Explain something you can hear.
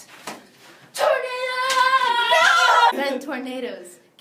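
Two young women scream loudly.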